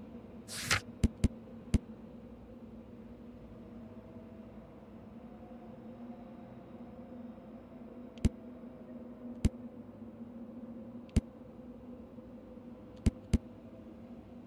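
Soft clicks tick as a menu selection moves.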